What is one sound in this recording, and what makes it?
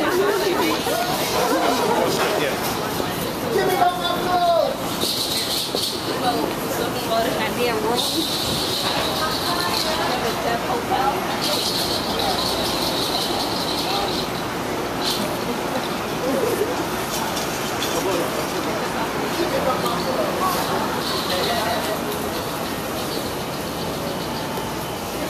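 Men and women talk nearby outdoors on a busy street.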